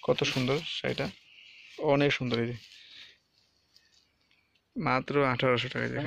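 Silk cloth rustles softly as hands handle it.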